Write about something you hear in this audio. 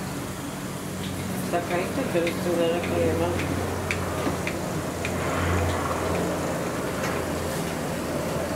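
A knife clicks and scrapes against a glass baking dish.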